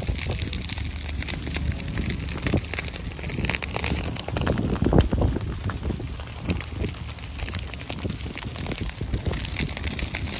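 Dry grass crackles and pops as flames burn through it.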